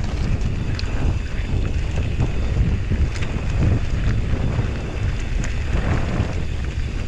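Bicycle tyres roll and crunch over a rough gravel track.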